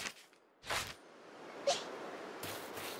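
Soft wind blows over an open grassy hillside.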